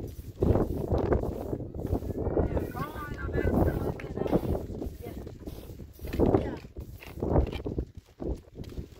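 A broom sweeps across a floor in repeated scratchy strokes.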